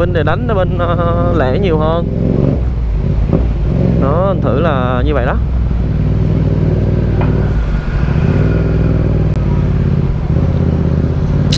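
A motorbike engine hums steadily at low speed.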